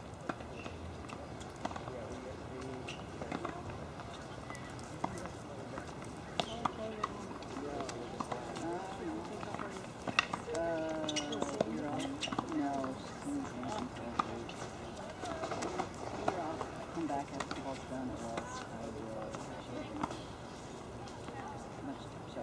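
Tennis rackets strike a ball back and forth in a long rally.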